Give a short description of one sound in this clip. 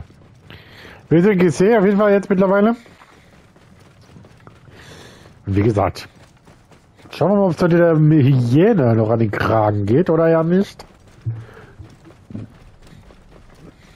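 A camel's hooves thud softly on sand at a steady trot.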